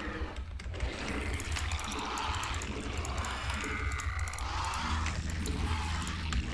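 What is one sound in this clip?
Video game battle sounds crackle and pop.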